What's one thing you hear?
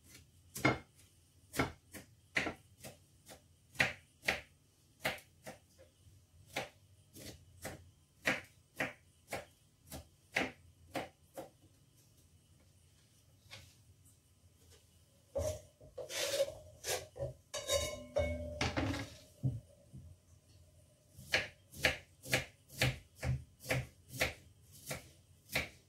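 A knife chops on a cutting board in quick, steady strokes.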